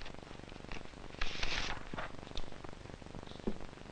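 Paper rustles and snips under scissors.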